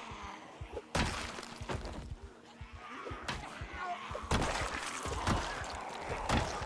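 Heavy blows thud and smack into bodies again and again.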